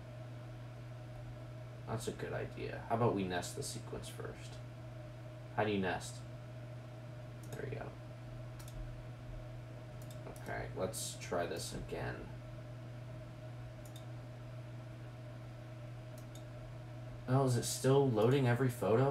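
A computer mouse clicks now and then.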